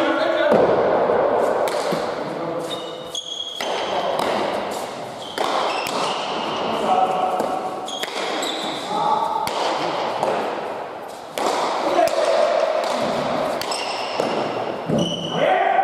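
A ball smacks against a wall and echoes in a large hall.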